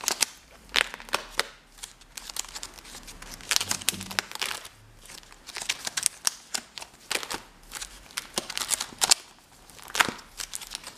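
Plastic album sleeves crinkle and rustle as pages are turned.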